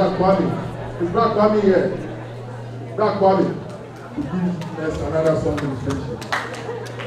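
A woman speaks through a microphone in a large echoing room.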